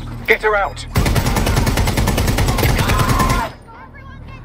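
A machine gun fires a long, rapid burst close by.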